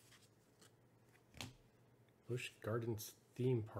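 Trading cards flick and slide against each other in hands.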